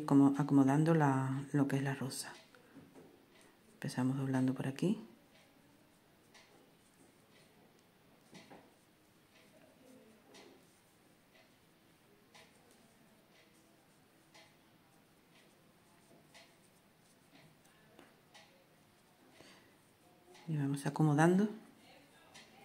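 Hands softly rustle and tug soft yarn.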